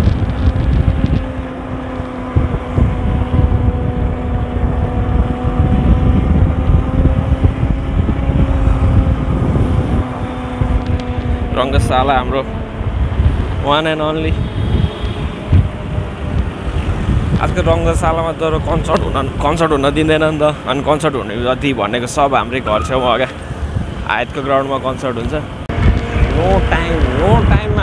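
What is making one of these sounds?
Traffic rumbles past on a road.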